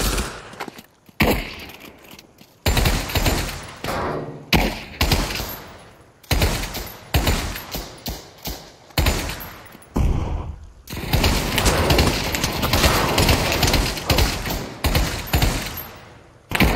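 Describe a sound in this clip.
A submachine gun fires loud bursts that echo off.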